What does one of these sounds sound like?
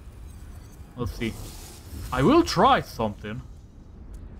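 A magical blast bursts with a crackling whoosh.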